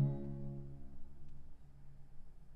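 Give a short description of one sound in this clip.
A small choir sings a held chord in a resonant hall, fading away.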